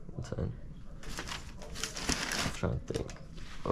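Paper rustles as a shoe box is handled.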